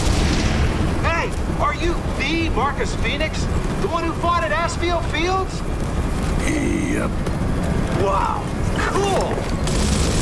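A young man asks questions with excitement.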